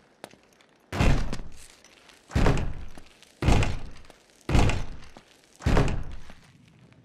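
A heavy wooden door thuds as it is shoved.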